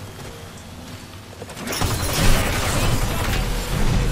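An explosion bursts with a roar of flames.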